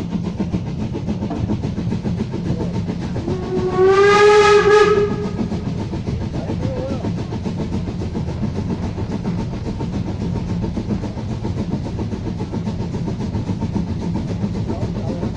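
A steam locomotive chuffs steadily nearby.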